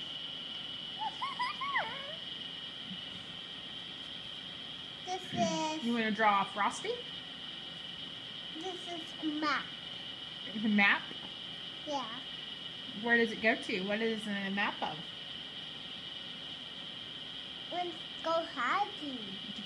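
A young boy talks playfully in a high voice close by.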